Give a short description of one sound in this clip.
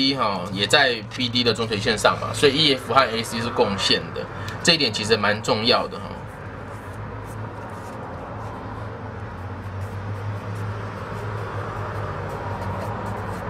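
A marker squeaks as it writes on paper.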